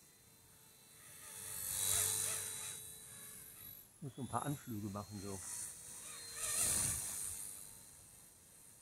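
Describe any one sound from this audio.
A helicopter flies past with a loud rotor roar that swells and fades.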